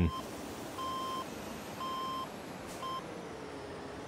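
A reversing alarm beeps at an even pace.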